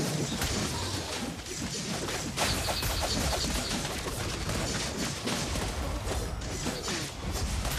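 Game battle sounds crackle and burst with magic blasts and hits.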